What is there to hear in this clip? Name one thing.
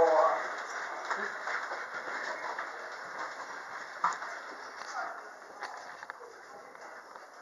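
Suitcase wheels roll and rattle over a hard floor.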